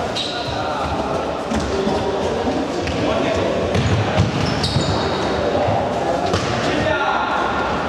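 Young boys shout to each other.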